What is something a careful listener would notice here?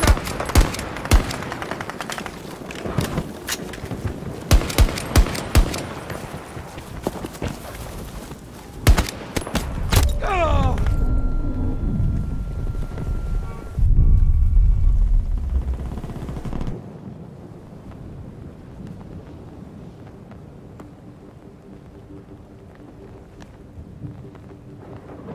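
A young man talks into a headset microphone.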